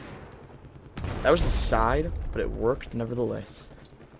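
A loud explosion booms and rumbles close by.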